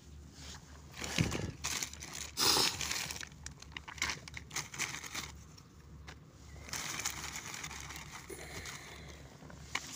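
Plastic bags rustle and crinkle as a hand rummages through them.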